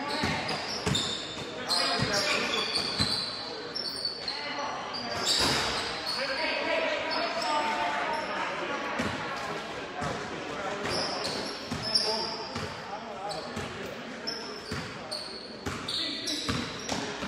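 Sneakers squeak sharply on a hardwood court, echoing in a large gym.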